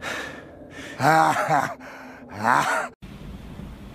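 A man speaks with a cartoonish voice.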